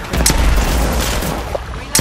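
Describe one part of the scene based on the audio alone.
Bullets splash into water.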